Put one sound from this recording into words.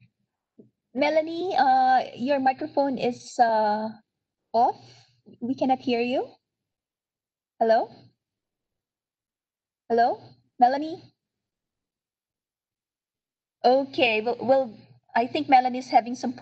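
A middle-aged woman speaks calmly over an online call, with pauses.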